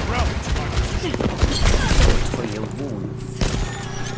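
Video game gunfire cracks in quick bursts.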